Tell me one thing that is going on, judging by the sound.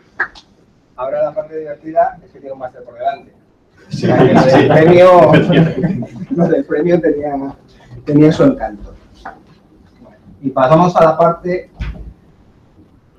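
A middle-aged man speaks calmly to an audience in a room.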